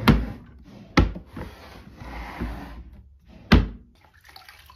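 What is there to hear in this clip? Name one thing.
A drawer slides and knocks shut.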